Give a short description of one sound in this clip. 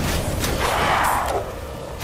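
A pistol is reloaded with a metallic click.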